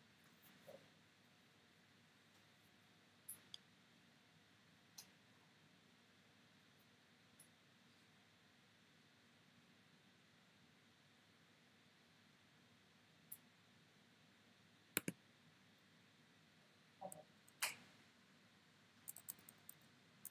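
Short digital game sound effects chime and whoosh now and then.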